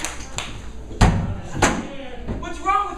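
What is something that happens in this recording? A folding chair clatters open.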